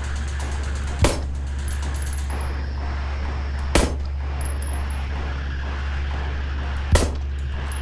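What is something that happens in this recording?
Gunshots ring out sharply.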